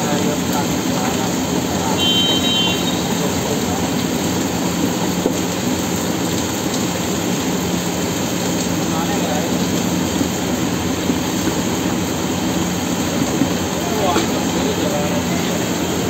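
Dry chickpeas rustle as hands toss them in a pan.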